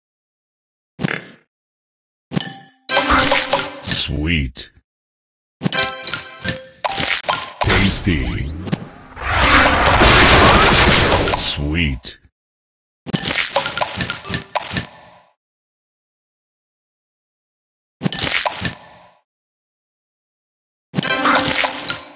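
Game chimes and sparkly effects play in bursts as candies match and pop.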